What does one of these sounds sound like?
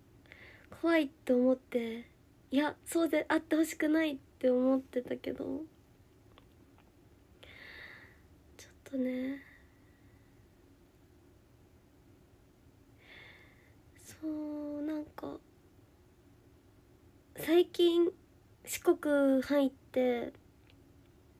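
A young woman speaks close to the microphone through a face mask, in short bursts with pauses.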